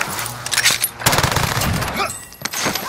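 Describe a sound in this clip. Rapid gunshots ring out.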